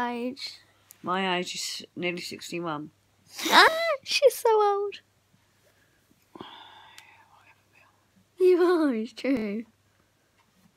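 A young girl talks animatedly close by.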